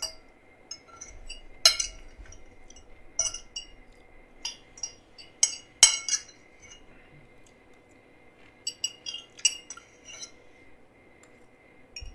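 A fork clinks and scrapes on a plate, close to a microphone.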